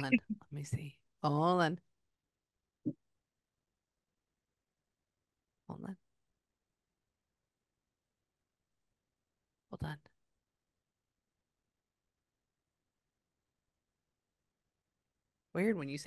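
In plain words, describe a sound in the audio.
A woman sings softly into a close microphone in short phrases.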